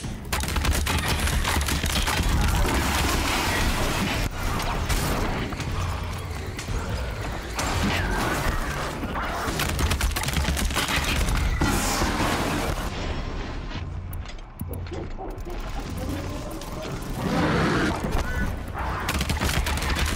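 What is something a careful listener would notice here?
Arrows strike a machine creature with sharp metallic hits.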